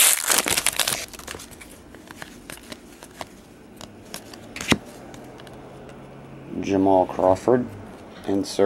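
Trading cards slide and flick against each other as they are shuffled.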